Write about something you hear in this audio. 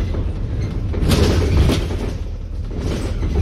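A passing bus roars by close and briefly.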